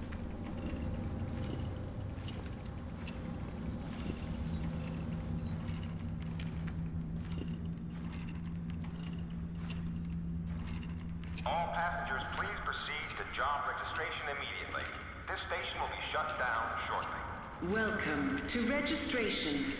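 Wheelchair wheels roll over a hard floor.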